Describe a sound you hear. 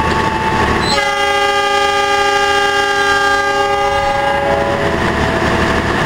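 A diesel locomotive horn blares loudly.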